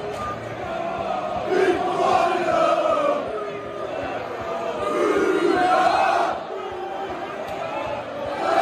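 A large stadium crowd sings loudly together, echoing under the roof, swelling and dipping in waves.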